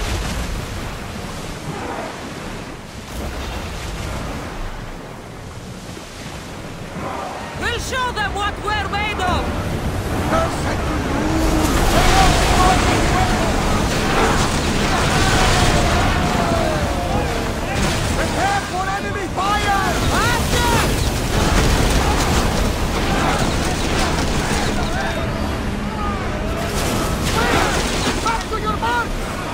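Waves splash against a ship's hull as it sails through rough sea.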